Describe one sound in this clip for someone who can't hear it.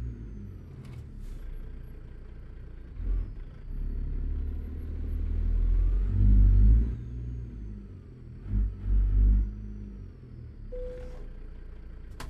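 A truck's diesel engine rumbles low and swells in bursts.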